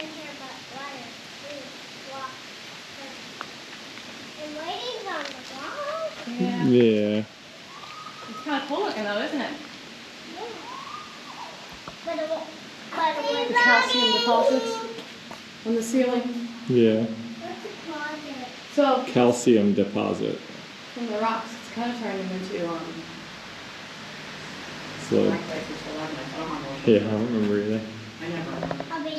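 A woman talks calmly to children, her voice echoing.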